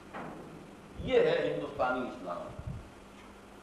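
An elderly man speaks steadily, as if lecturing, heard through a microphone in a room.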